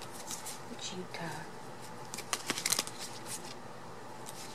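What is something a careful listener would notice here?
Plastic sleeves crinkle and rustle as cards are handled close by.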